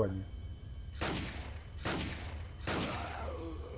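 A pistol fires several loud shots that echo.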